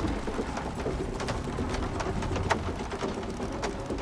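A waterfall splashes steadily nearby.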